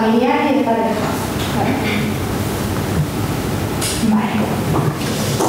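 A woman speaks steadily through a microphone in a large room.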